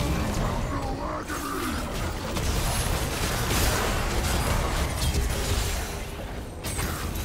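Magic spells blast and crackle loudly in a video game fight.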